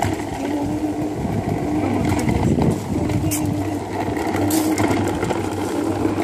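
Small plastic wheels rumble over pavement.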